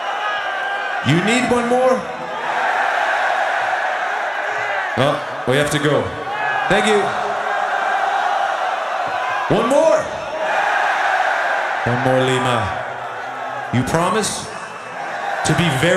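A crowd of young people shouts together in loud repeated bursts.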